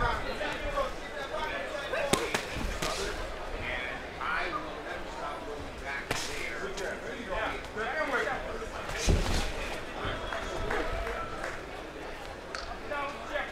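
Boxing gloves thud against a body in sharp blows.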